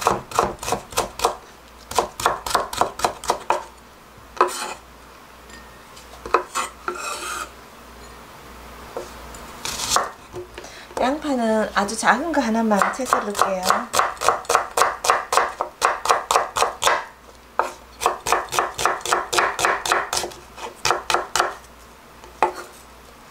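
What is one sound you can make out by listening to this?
A knife chops quickly on a wooden board.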